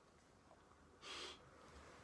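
A man blows a short, sharp puff of breath.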